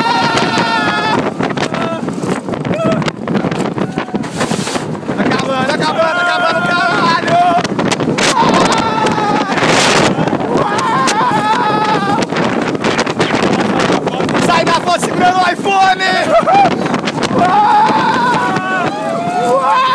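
Wind rushes past a microphone.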